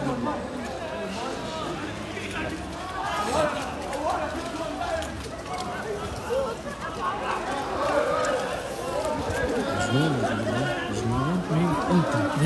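A crowd of men and women talk and shout all around outdoors.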